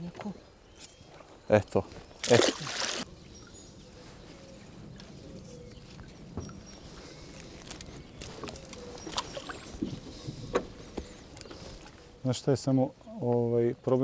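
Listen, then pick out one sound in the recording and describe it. Water splashes against a boat as a net is pulled in.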